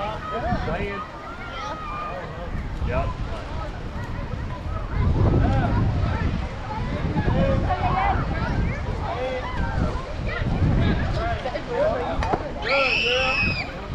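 Children call out and chatter across an open field.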